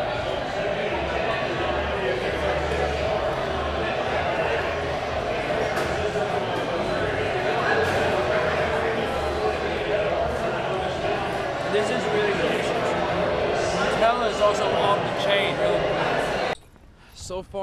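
A crowd of people chatters in a busy, echoing room.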